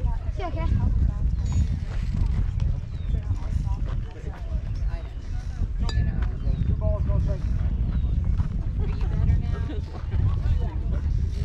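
Young players call out and shout across the field at a distance.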